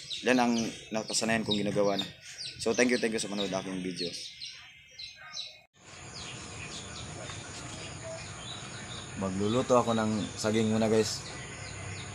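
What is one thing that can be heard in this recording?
A man talks calmly close to a phone microphone.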